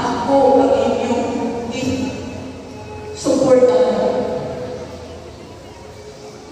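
A woman speaks into a microphone, heard through loudspeakers in a large echoing hall.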